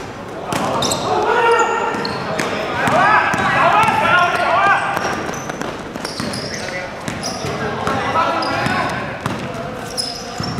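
Sneakers squeak sharply on a hard floor in an echoing hall.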